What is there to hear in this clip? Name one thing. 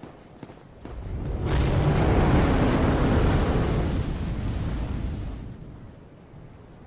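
A dragon breathes a roaring blast of fire.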